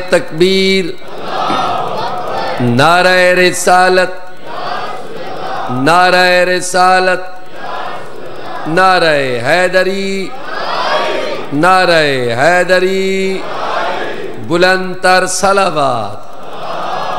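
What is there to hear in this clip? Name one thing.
A man recites in a loud, drawn-out singing voice through a microphone, echoing in a hall.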